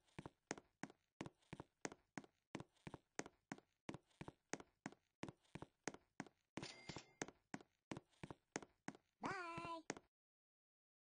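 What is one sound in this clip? Quick footsteps patter steadily as a game character runs.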